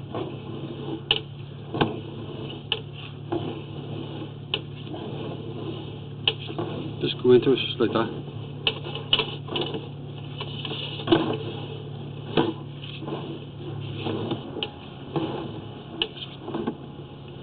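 Water trickles along the bottom of a pipe.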